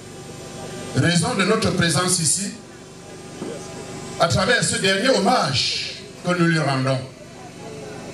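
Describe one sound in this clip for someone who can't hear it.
A middle-aged man speaks slowly and formally into a microphone, heard through loudspeakers outdoors.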